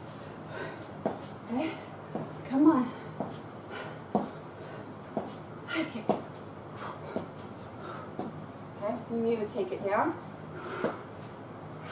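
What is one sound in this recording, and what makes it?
Footsteps thud lightly on a floor in a quick rhythm.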